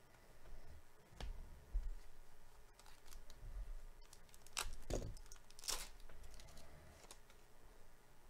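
A foil wrapper crinkles and tears as hands open a pack.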